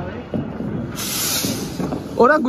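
A firework hisses loudly as it sprays sparks.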